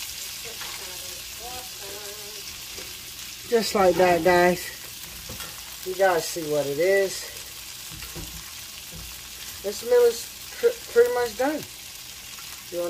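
Butter sizzles and bubbles in a hot pan.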